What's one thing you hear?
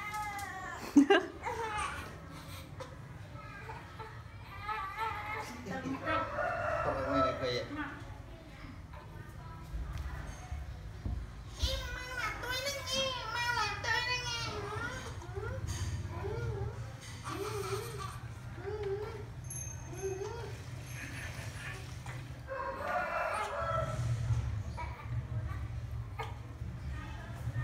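A baby coos and gurgles.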